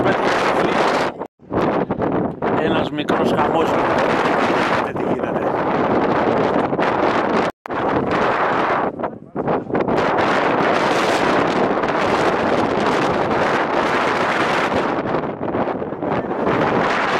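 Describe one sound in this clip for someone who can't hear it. Wind gusts hard across the microphone outdoors.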